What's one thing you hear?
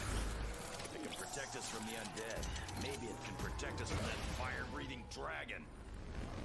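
Monsters growl and snarl close by.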